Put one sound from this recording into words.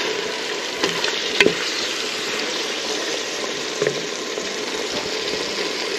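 Meat sizzles steadily in a hot pan.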